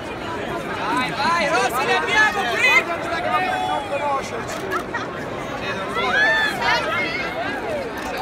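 Young women laugh and shout excitedly nearby.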